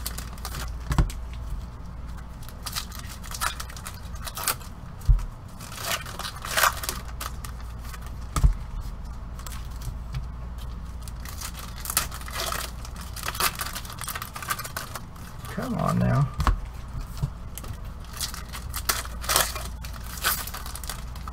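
Card packs rustle and crinkle as they are handled.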